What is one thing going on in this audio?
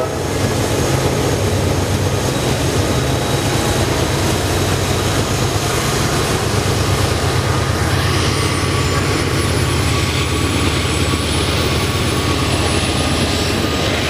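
Diesel locomotive engines rumble loudly close by.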